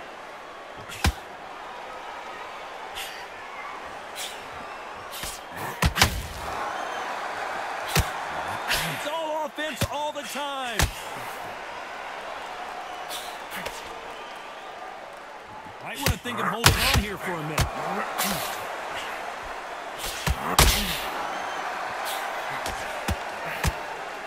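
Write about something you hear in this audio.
Punches thud against gloves and bodies in sharp bursts.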